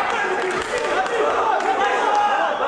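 Gloved punches thud against a fighter.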